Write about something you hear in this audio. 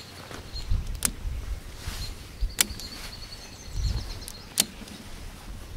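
Tent poles click and clack as they are handled.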